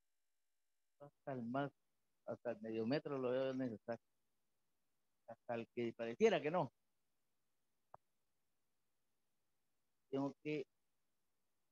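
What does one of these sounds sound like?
A man speaks with animation through a microphone and loudspeakers, in short bursts with pauses.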